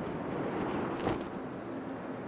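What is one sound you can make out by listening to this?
A heavy thud sounds as a figure lands.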